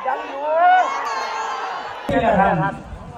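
A crowd of people cheers and shouts outdoors.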